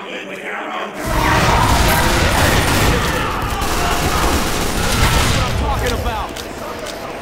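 Gunfire and explosions boom loudly.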